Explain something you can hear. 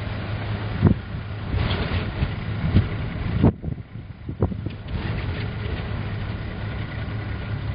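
Tyres roll on an asphalt road as a vehicle drives along.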